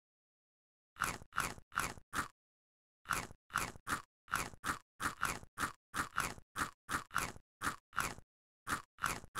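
Crisp crunching bites sound in quick succession.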